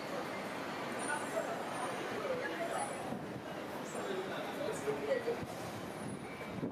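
A tram rolls slowly into a stop.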